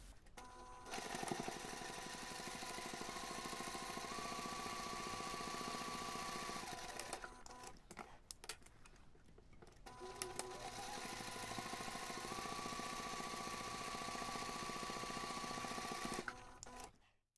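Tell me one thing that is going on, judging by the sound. A sewing machine hums and stitches steadily.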